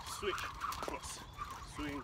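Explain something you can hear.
A jump rope whirs and slaps the ground.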